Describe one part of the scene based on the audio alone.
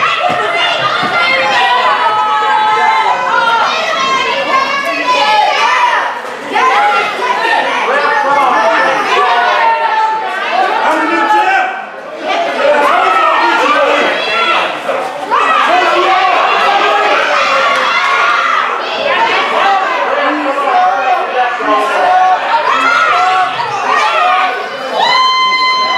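A crowd of men and women shouts and cheers loudly in an echoing hall.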